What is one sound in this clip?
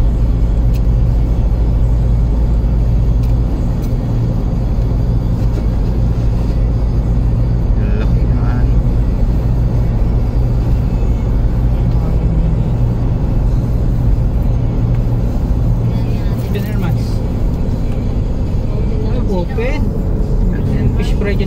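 Tyres roar on the road.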